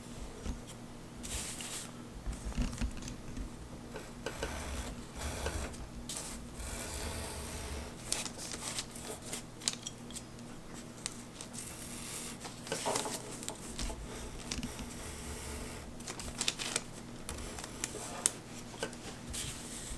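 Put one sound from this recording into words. A hand slides over paper with a soft rustle.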